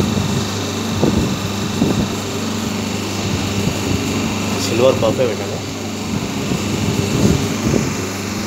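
A machine press thumps now and then.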